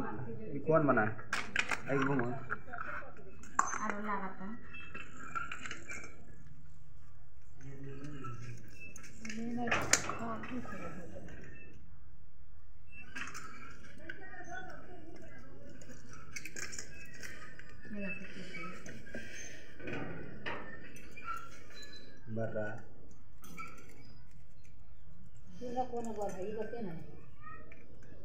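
Small plastic parts click and rattle together.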